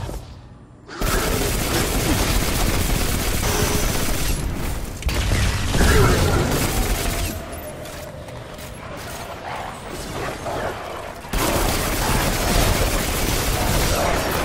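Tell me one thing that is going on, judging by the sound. Automatic gunfire rattles in rapid, loud bursts.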